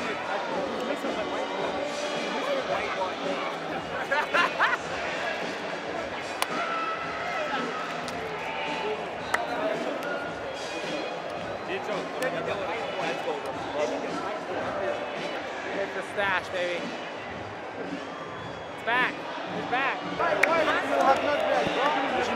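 A large stadium crowd murmurs and cheers throughout.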